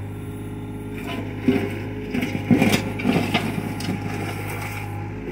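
An excavator bucket scrapes and drops dirt on the ground.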